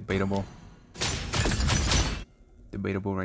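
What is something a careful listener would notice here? Magic spells whoosh and burst in a fight.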